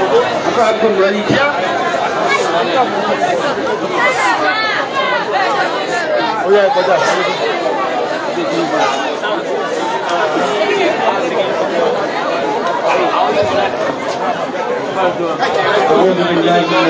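A large crowd of women and girls chatter loudly all around, outdoors.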